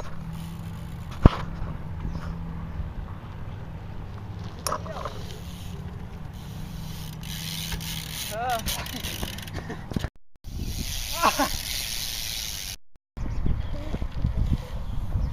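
Bicycle tyres roll and bump over grass.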